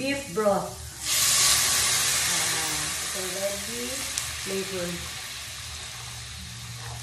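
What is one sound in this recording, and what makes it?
Liquid pours and sizzles into a hot pan.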